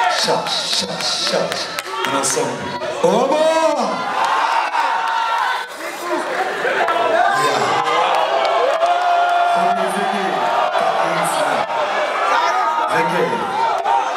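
A man sings loudly into a microphone over a live band.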